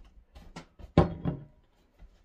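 A jar is set down on a table with a knock.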